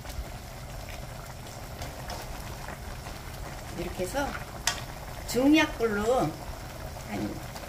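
A pan of vegetables simmers and bubbles softly.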